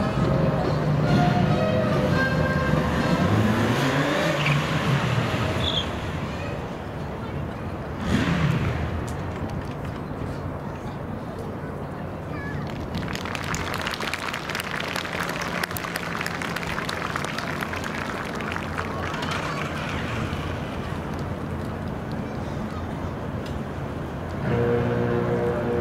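Motorcycle engines rumble and rev.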